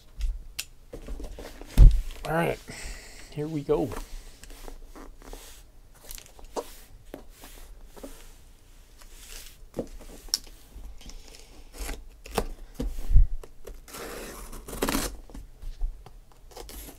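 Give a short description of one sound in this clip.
Hands handle and turn a cardboard box with scraping and bumping.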